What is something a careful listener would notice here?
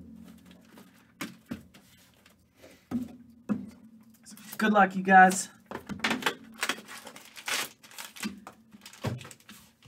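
Card packs rustle and tap as they are handled.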